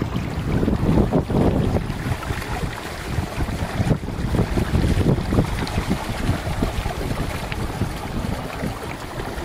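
Gusting wind buffets the microphone outdoors.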